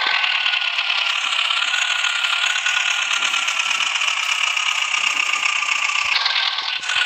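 A tractor engine in a driving game drones.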